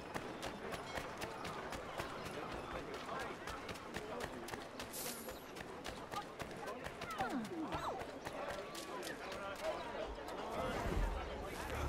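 Quick footsteps run over cobblestones.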